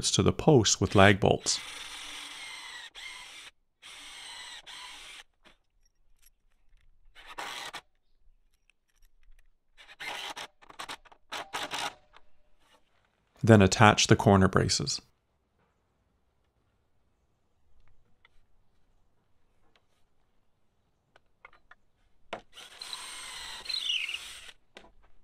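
A cordless drill whirs in short bursts, driving a screw into wood.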